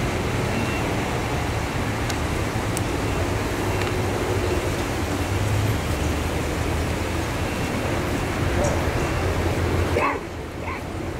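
A man speaks calmly through a loudspeaker outdoors.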